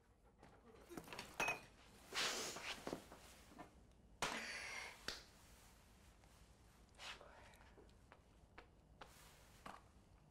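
A young woman sobs and sniffles quietly.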